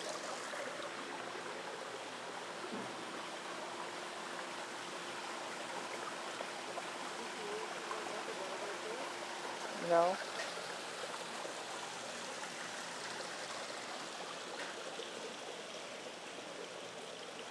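Water trickles softly and steadily nearby.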